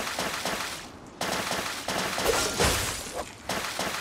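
A sword swings with a whoosh.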